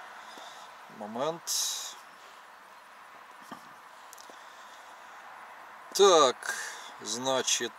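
An older man speaks briefly and calmly, close by.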